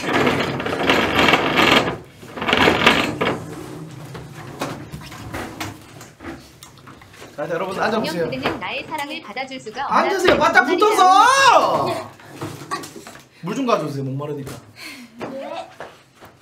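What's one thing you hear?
Young women laugh and chatter nearby.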